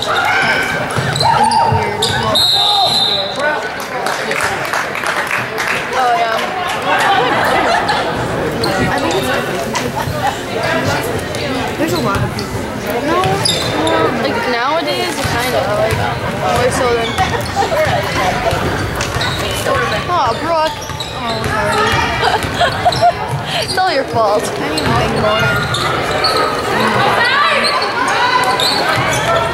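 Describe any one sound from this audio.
Sneakers squeak on the gym floor.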